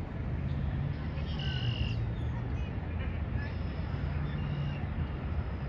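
Cars drive by on a nearby road with a steady low rumble.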